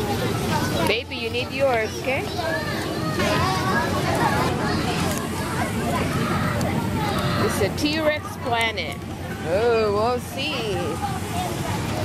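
A young girl speaks close by.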